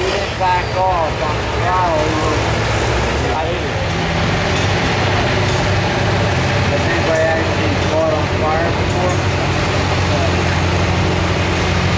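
A tractor engine roars loudly and steadily.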